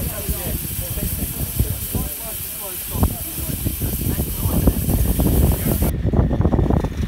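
A small steam locomotive hisses and chuffs close by.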